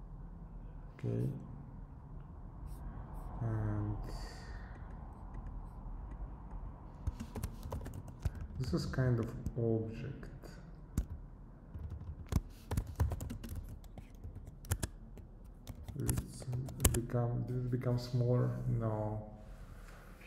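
A young man talks calmly and closely into a microphone, in short bursts.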